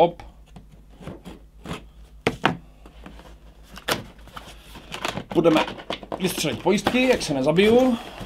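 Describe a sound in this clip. Cardboard packaging rustles and scrapes as a box is opened.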